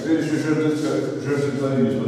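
A game piece is slid across a board.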